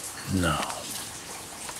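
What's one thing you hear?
An elderly man speaks briefly close by.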